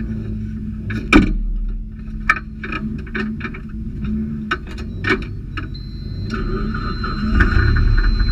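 A turbocharged four-cylinder rally car engine idles, heard from inside the cabin.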